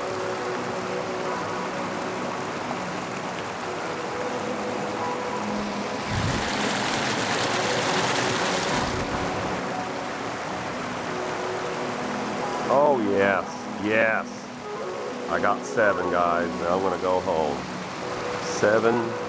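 Water rushes steadily over a weir.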